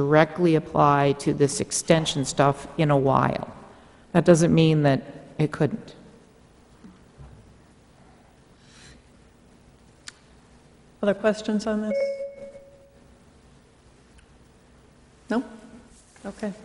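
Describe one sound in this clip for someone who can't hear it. A man speaks through a microphone in a large room, pausing between phrases.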